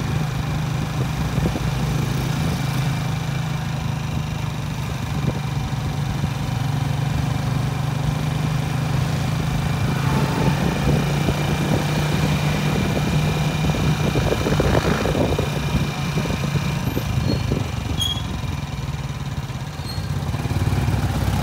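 An engine hums steadily as a vehicle drives along a road.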